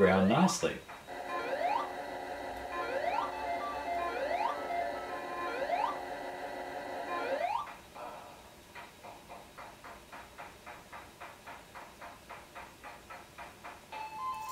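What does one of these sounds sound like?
Garbled electronic game music loops in a steady rhythm.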